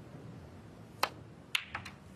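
A cue strikes a ball with a sharp click.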